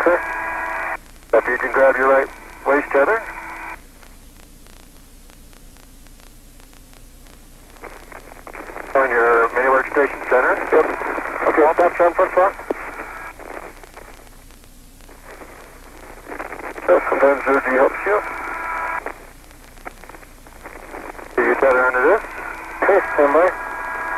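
A man talks calmly over a crackly, tinny radio link, in short bursts.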